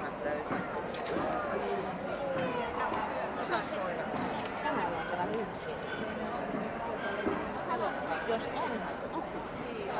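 Many people chatter in a large echoing hall.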